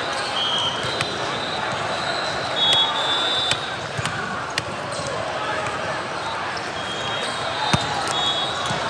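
A volleyball thumps as players strike it.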